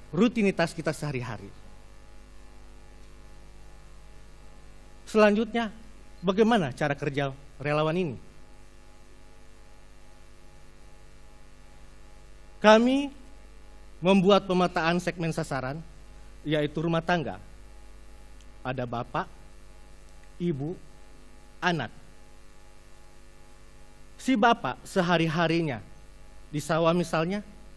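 A man speaks calmly through a headset microphone, with long pauses.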